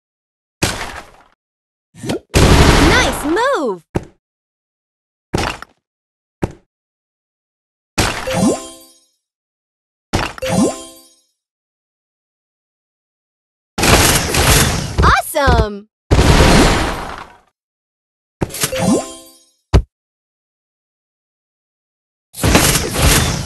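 Game blocks pop and burst in short bright chimes.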